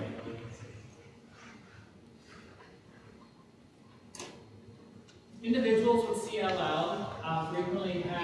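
A woman lectures through a microphone.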